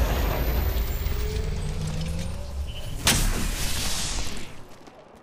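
A device hums and whirs.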